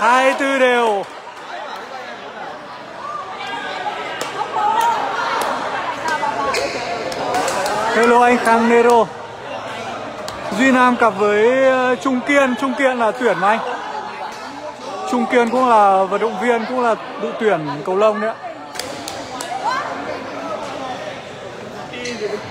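Rackets smack a shuttlecock sharply.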